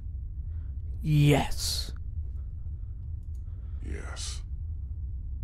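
Another man answers in a low, strained voice.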